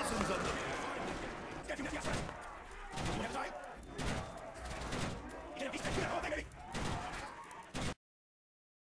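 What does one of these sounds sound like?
A gun fires.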